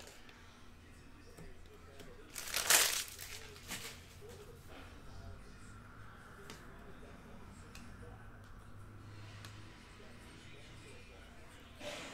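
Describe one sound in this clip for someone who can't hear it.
Cardboard packs rustle and slide on a table.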